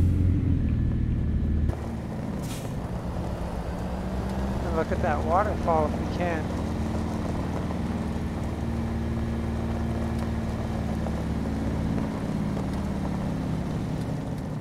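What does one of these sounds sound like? A diesel truck engine rumbles steadily.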